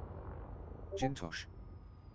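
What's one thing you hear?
Short electronic beeps sound three times in quick succession.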